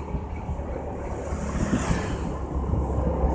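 A motorbike passes close by on the road.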